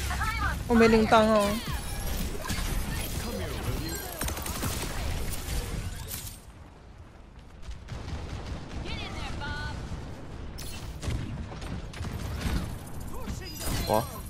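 A magical orb hums and chimes as it is cast.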